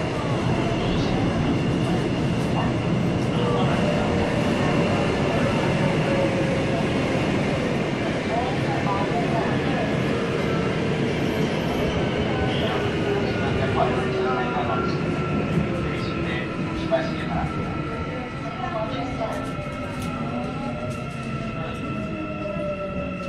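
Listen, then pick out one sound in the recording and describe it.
A subway train's electric motors whine, falling in pitch as the train slows.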